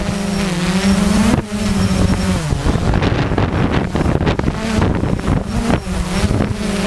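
A drone's propellers whine steadily, rising and falling in pitch.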